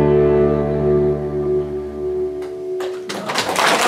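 An acoustic guitar strums a final chord.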